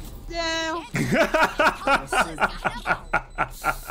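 A young man laughs loudly into a close microphone.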